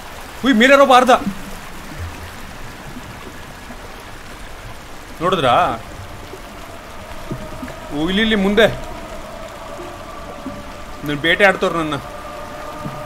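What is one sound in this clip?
A man speaks with animation into a close microphone in short bursts.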